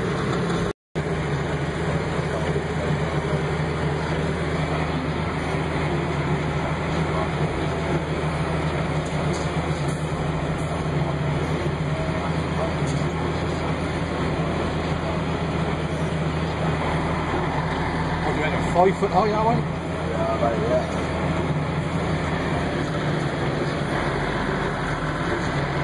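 A vehicle engine hums steadily at low speed.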